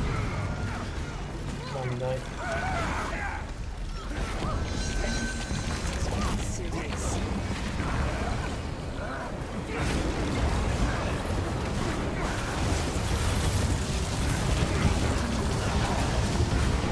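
Magic attacks crackle and boom in a fast game battle.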